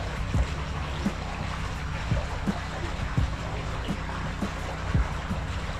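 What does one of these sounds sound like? Liquid pours and splashes into pool water.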